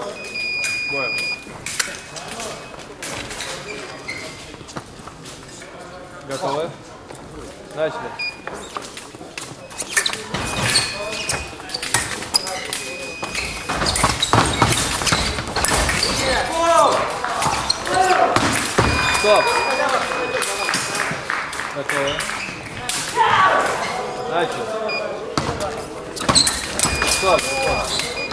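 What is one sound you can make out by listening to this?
An electronic scoring machine beeps.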